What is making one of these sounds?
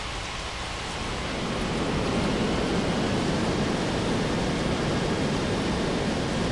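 A jet engine roars loudly, swelling and then holding steady.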